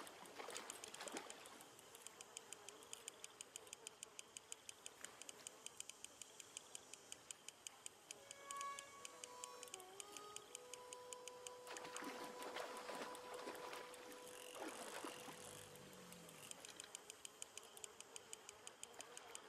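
A fishing reel clicks rapidly as the line is wound in.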